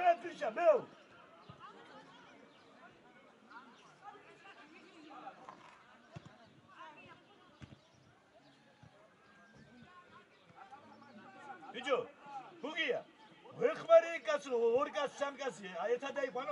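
Young players shout to each other across an open outdoor pitch.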